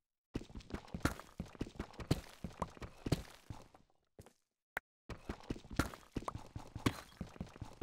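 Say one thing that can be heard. A pickaxe chips rapidly at stone, with repeated sharp knocks.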